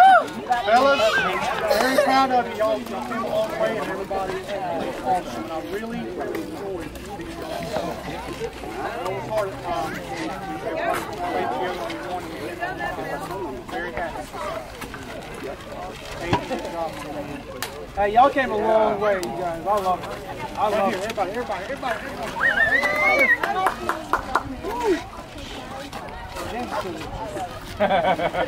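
A crowd of children and adults chatters nearby outdoors.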